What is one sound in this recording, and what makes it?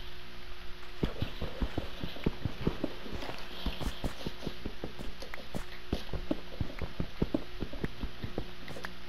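A pickaxe chips rapidly at stone blocks.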